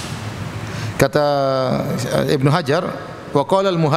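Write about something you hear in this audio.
A man recites in a slow, melodic voice through a microphone.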